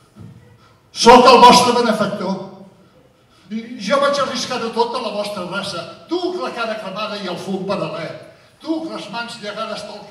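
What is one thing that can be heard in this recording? An elderly man speaks with animation through a microphone in a large hall.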